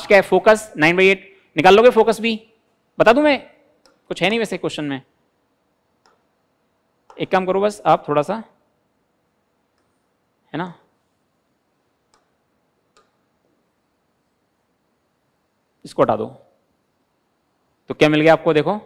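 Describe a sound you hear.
A man explains calmly through a close microphone, in short bursts with pauses.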